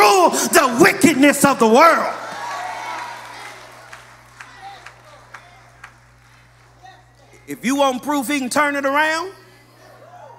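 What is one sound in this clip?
A man preaches with strong emotion into a microphone in an echoing hall.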